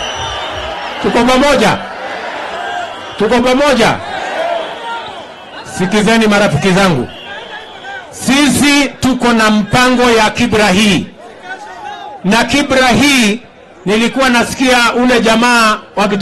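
A man speaks loudly and with animation into a microphone, heard through loudspeakers outdoors.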